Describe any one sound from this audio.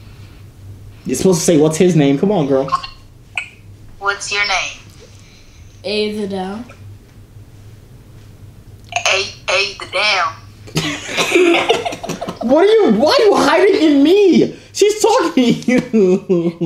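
A young man talks and laughs with animation close by.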